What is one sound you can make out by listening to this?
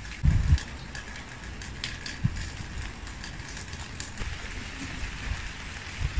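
Dry food rustles and crunches as a hand stirs it in a bowl.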